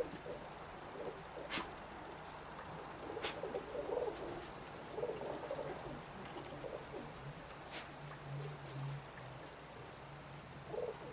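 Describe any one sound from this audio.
A flock of birds calls in bursts high overhead.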